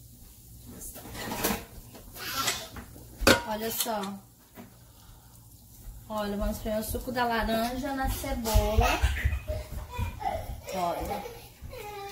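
Onions sizzle in a hot pan.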